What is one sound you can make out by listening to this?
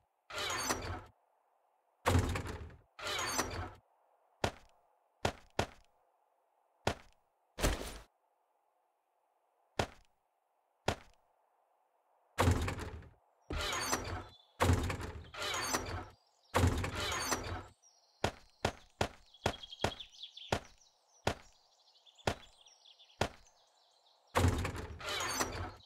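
A wooden chest opens and shuts with dull thuds.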